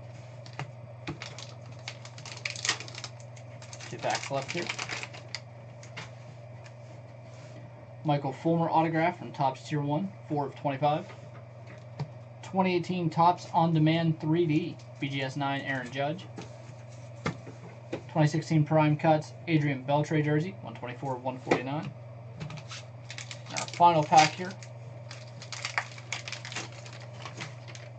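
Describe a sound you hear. Plastic card cases click and rattle as hands handle them.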